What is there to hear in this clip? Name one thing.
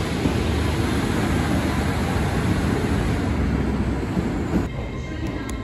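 A second train rolls slowly along the tracks.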